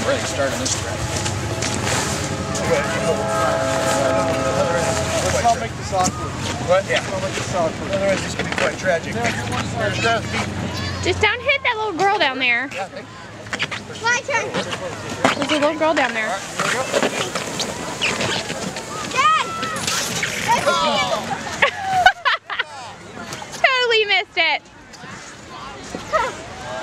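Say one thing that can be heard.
Young men shout and laugh outdoors in the snow.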